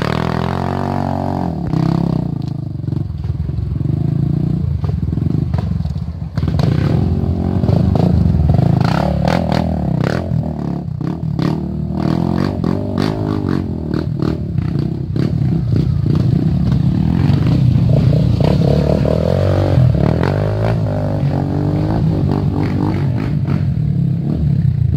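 Dirt bike engines rev and roar nearby, rising and falling.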